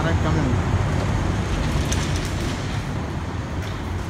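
Automatic glass doors slide open.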